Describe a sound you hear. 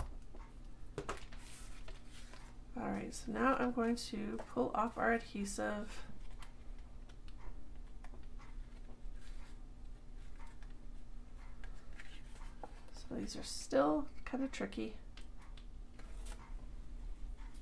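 Paper rustles and crinkles as hands fold it.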